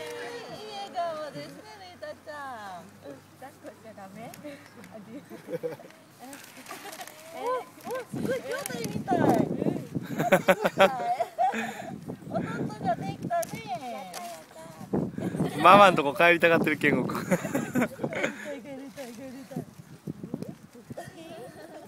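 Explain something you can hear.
Young women talk and laugh close by, outdoors.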